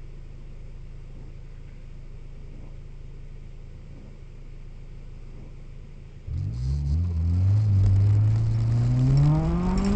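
Windscreen wipers sweep across a wet windscreen.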